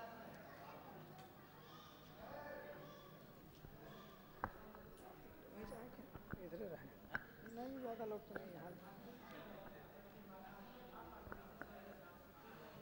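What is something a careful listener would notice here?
A crowd of people murmurs and talks quietly in a large echoing hall.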